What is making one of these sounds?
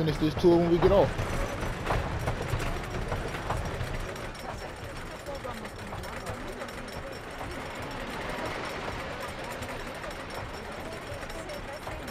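A roller coaster car rattles and clacks steadily as it climbs a lift hill.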